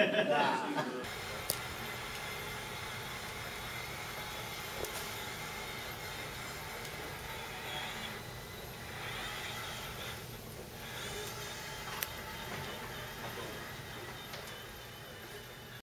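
A robot's motor hums softly as it rolls across a carpeted floor.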